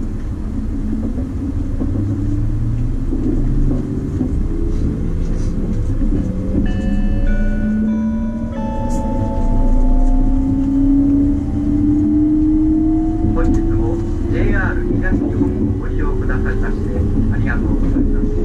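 A train's electric motor whines, rising steadily in pitch as it gathers speed.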